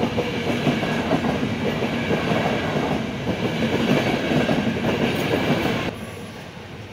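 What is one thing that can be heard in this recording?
A train rumbles past on the tracks close by.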